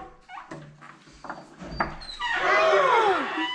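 A wooden door slides open.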